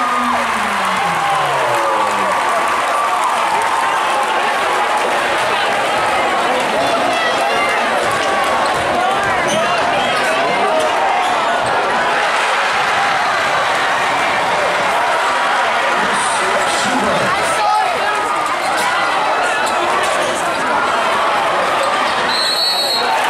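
Sneakers squeak on the hardwood court.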